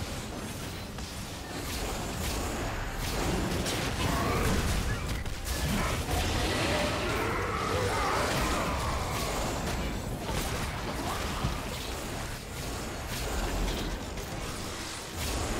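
Spell effects crackle and blast in a fast fight.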